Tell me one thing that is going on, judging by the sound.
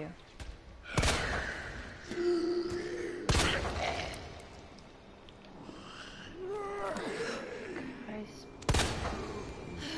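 A pistol fires several loud shots that echo.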